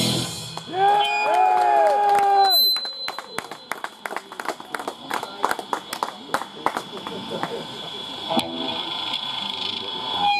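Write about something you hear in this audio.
A band plays loud electric guitar through loudspeakers.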